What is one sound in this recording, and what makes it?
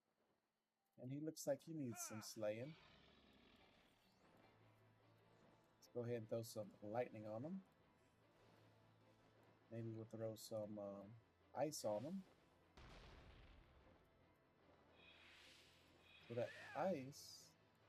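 Magic spells burst and whoosh in a fight.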